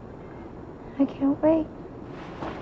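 A second young woman answers tensely.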